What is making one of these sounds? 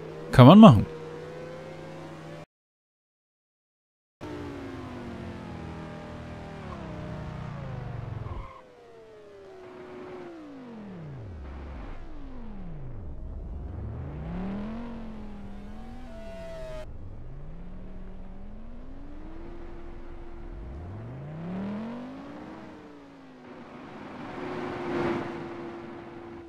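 A racing car engine revs up and down, rising and falling in pitch.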